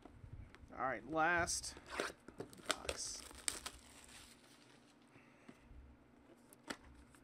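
A cardboard box is tapped and turned over by hand.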